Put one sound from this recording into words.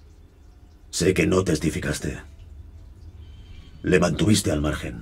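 A man speaks slowly in a low, deep voice.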